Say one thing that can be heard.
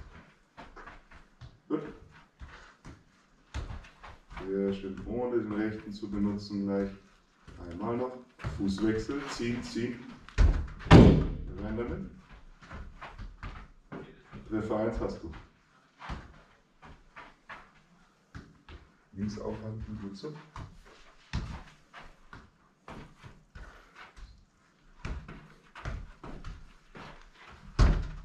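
A football thuds and taps against a player's feet.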